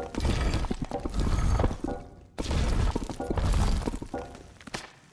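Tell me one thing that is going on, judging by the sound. Footsteps scuff on stone paving.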